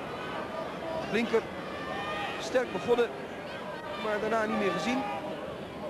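A crowd murmurs in a large open stadium.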